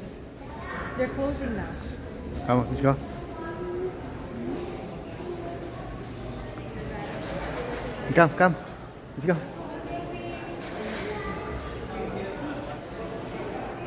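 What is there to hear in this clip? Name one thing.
Adults and children chatter at a distance in a large echoing hall.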